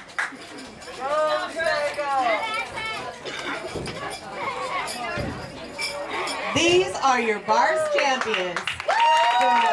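A woman announces over a loudspeaker.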